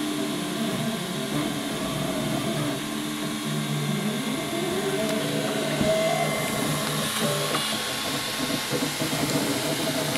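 A 3D printer's stepper motors whir and hum in shifting tones as the print head moves.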